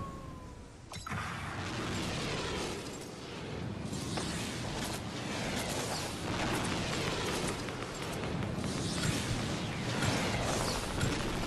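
Wind rushes steadily past while gliding through the air.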